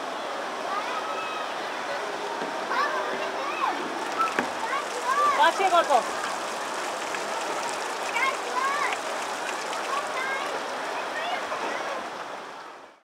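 Young children chatter and call out excitedly nearby.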